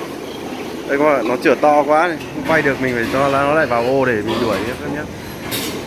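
Pigs squeal and grunt nearby.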